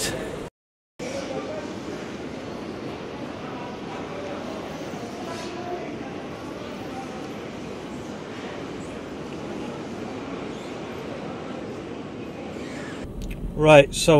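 A baggage carousel rumbles steadily in a large echoing hall.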